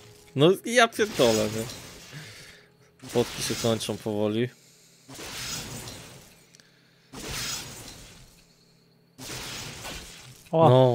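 A magic spell crackles and whooshes again and again.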